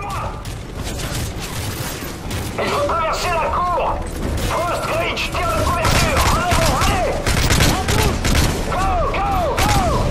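Gunfire crackles in rapid bursts nearby.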